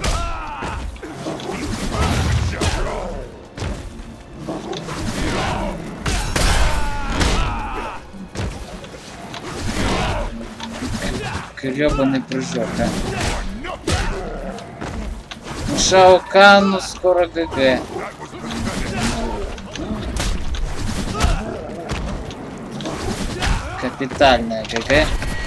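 Punches and kicks land with heavy thuds and smacks.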